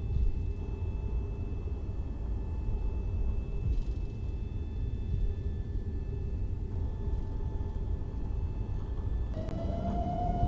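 Jet engines rumble steadily at idle.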